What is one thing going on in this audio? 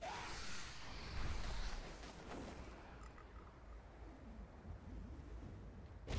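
A young woman exclaims in surprise close to a microphone.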